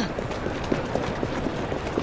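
Footsteps run on wet cobblestones.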